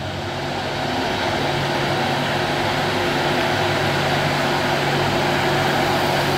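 A motorcycle engine buzzes past.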